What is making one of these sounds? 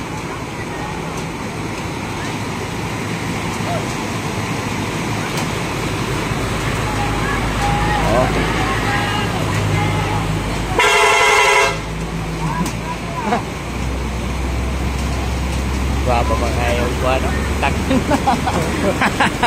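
Heavy truck engines rumble as they drive slowly through deep water.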